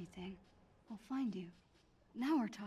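A young woman speaks cheerfully.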